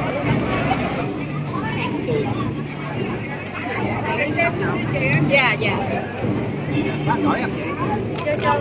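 Serving spoons clink against metal trays.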